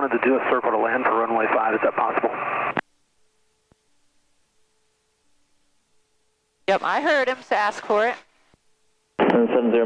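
A woman speaks calmly through a headset intercom.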